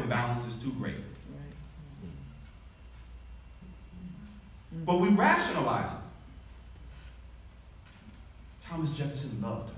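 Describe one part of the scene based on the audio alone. A man speaks calmly into a microphone over a loudspeaker in a large echoing room.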